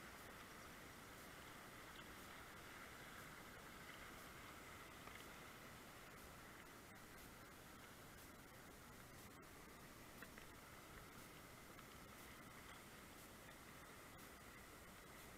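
A river rushes and gurgles steadily over shallow rapids.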